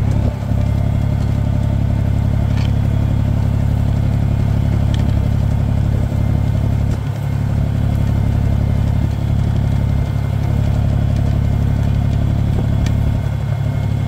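A plough scrapes and churns through dry soil.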